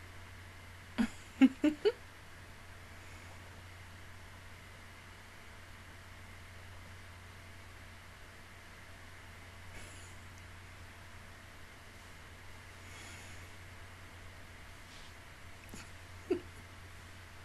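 A young woman makes a few short vocal sounds close to a microphone.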